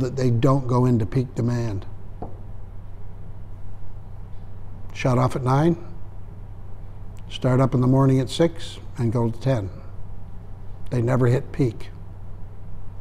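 An elderly man speaks calmly, in short bursts with pauses.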